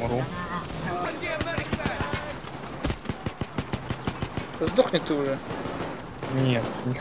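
Gunshots crack in quick succession.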